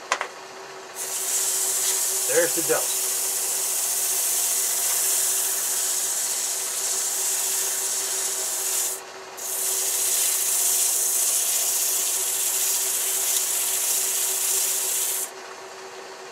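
A welding torch hisses steadily, pausing briefly once.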